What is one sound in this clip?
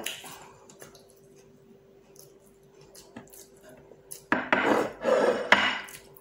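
A woman chews and eats.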